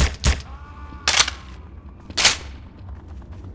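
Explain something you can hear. A rifle is reloaded with sharp metallic clicks.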